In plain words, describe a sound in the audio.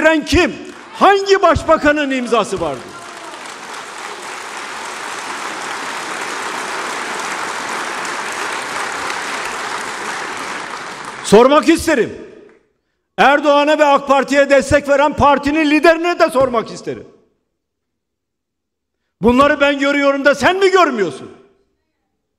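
An elderly man speaks forcefully through a microphone, his voice echoing in a large hall.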